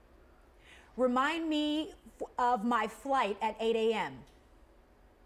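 A woman speaks a short phrase clearly, close to a microphone.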